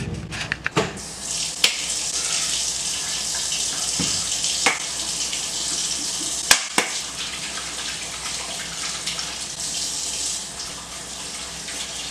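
Dishes clink in a sink.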